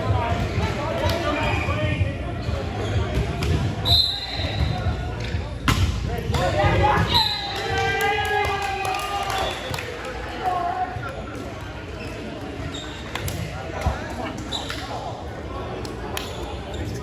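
Young men shout and cheer in a large echoing gym.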